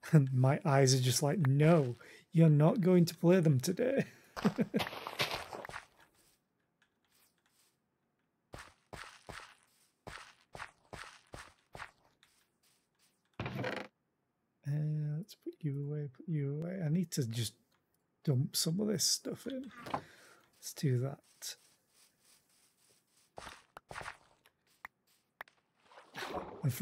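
Footsteps thud softly on grass and dirt.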